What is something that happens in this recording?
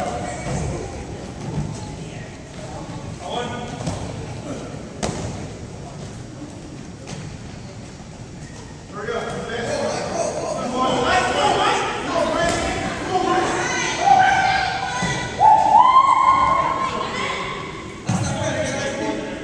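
A ball thumps against hands.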